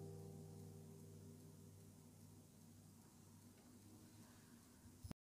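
An acoustic guitar rings with a softly strummed chord that slowly fades.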